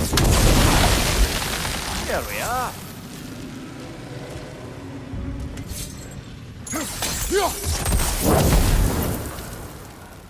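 Flames crackle and roar as brambles burn away.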